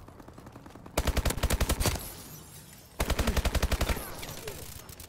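An automatic rifle fires rapid bursts of shots.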